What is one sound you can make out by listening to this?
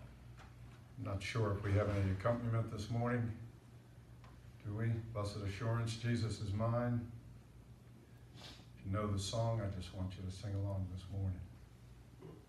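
A man speaks through a microphone and loudspeakers in an echoing room, in a slow, solemn way.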